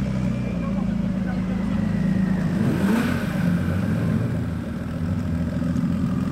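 A sports car engine idles with a deep, rumbling burble close by.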